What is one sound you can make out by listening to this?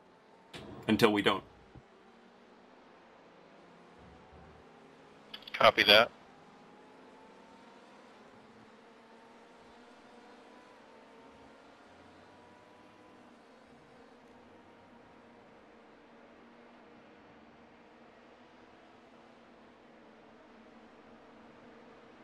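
A racing car engine hums faintly and steadily, rising in pitch as it accelerates.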